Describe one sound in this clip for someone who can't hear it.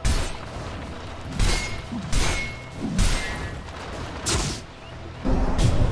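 Magic blasts whoosh and crackle in sudden bursts.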